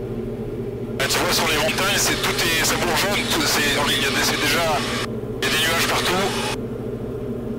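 A man speaks with animation through a headset intercom.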